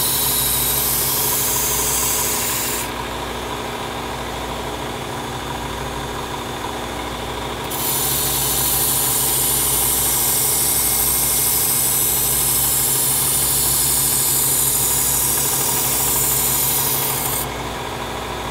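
A knife blade grinds against a running sanding belt with a harsh hiss.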